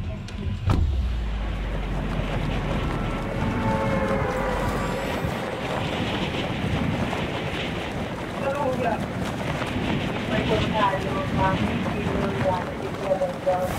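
Wind rushes steadily past a falling figure.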